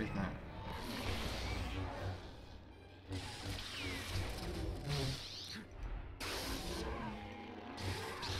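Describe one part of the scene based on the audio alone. Electric crackling bursts zap in short blasts.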